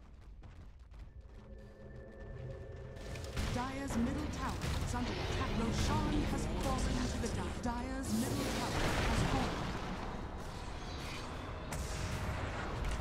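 Weapons clash and thud in a fantasy game battle.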